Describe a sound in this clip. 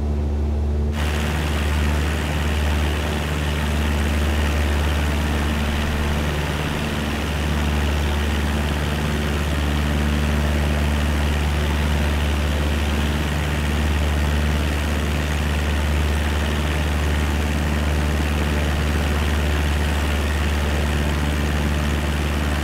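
A small propeller plane's engine drones loudly with rushing wind outside.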